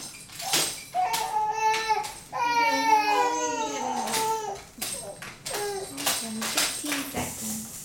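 A baby babbles and squeals nearby.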